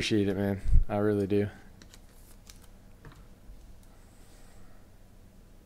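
Trading cards rustle and tap as they are handled.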